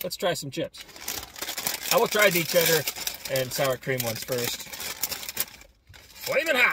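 A crisp packet crinkles as it is torn open.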